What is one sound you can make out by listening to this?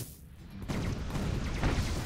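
A laser gun fires in short bursts.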